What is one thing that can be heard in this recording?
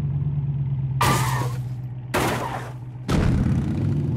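A truck crashes and thuds as it tumbles over.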